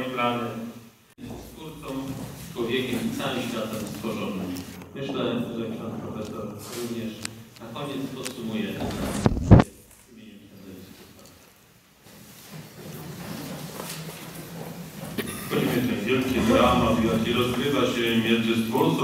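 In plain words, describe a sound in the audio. A man speaks calmly into a microphone, heard over loudspeakers in a large echoing hall.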